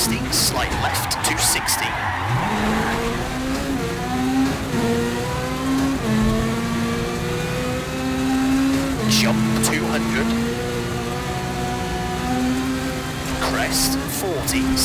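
A rally car engine revs hard and climbs through the gears.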